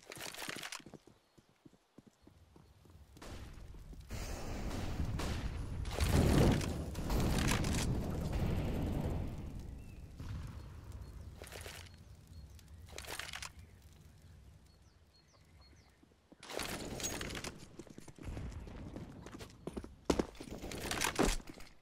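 Footsteps tap on a stone street.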